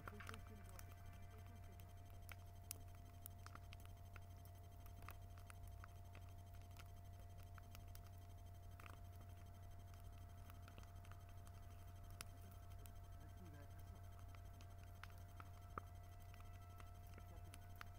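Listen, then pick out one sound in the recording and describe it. Flames roar steadily from a bonfire.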